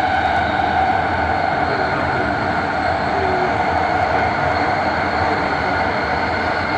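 A train rumbles and roars steadily through a tunnel.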